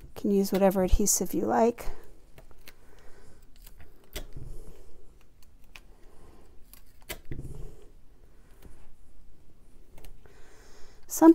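Card paper rustles softly as fingers press and slide over it.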